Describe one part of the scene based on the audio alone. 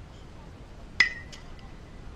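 A metal bat strikes a ball with a sharp ringing ping.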